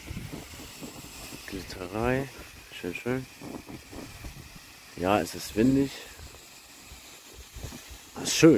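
A sparkler fizzes and crackles steadily.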